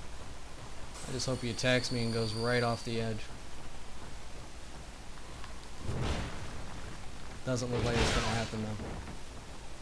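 Swords clash with a ringing metallic clang.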